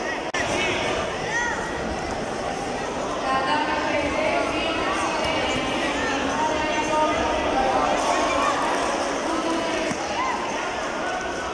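A large crowd chatters and cheers in a big echoing hall.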